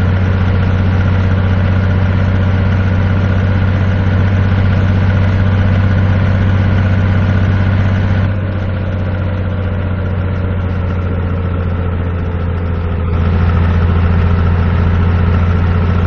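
A truck engine hums steadily with a low drone, easing slightly for a few seconds before rising again.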